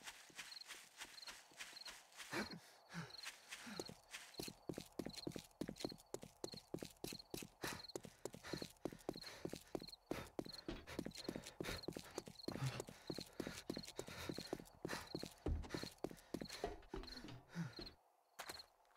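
Footsteps run quickly and evenly on hard ground.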